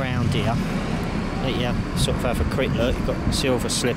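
Car traffic hums along a nearby road.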